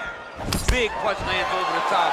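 A punch lands with a dull thud.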